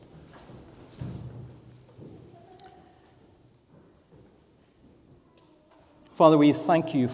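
A man speaks quietly through a microphone.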